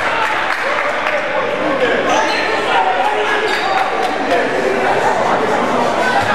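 A crowd murmurs and calls out in an echoing gym.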